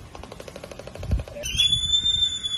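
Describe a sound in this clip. Large seabirds clatter their bills rapidly.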